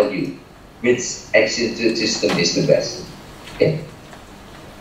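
An elderly man speaks calmly through a microphone, as on an online call.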